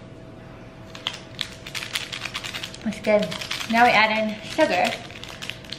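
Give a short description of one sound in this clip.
A paper packet crinkles and tears.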